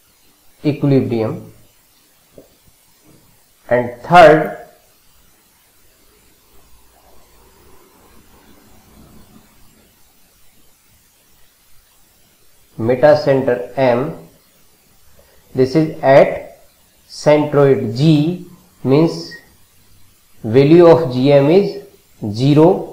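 A middle-aged man speaks calmly and clearly into a close microphone, explaining with pauses.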